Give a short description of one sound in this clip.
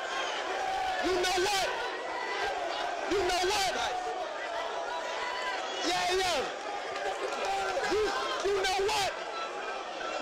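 A crowd shouts and cheers in bursts.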